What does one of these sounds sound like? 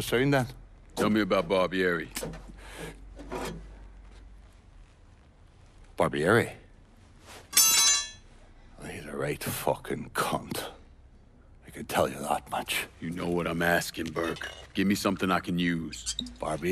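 A young man speaks calmly and firmly.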